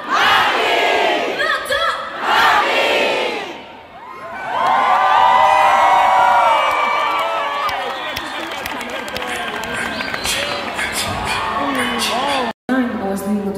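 A crowd screams and cheers loudly in a large echoing hall.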